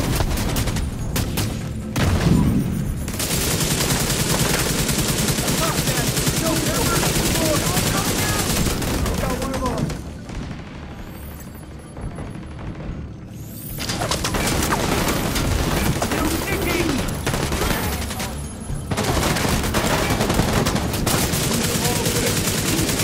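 Rifles fire in rapid bursts.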